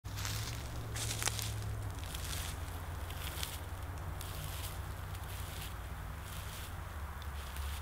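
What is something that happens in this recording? Footsteps crunch through dry fallen leaves.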